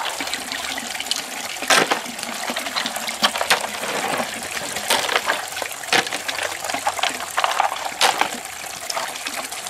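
Snail shells clatter and click as they are handled.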